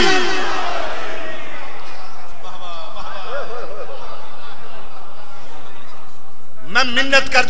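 A man chants loudly into a microphone, heard through echoing loudspeakers.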